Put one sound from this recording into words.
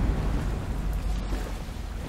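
Thunder cracks from a lightning strike.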